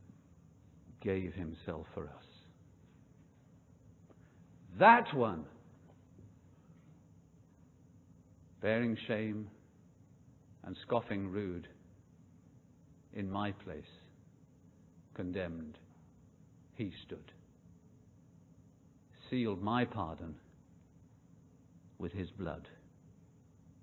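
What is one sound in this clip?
An elderly man speaks calmly into a microphone, in short phrases with pauses.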